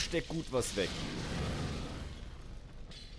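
Flames burst with a roar.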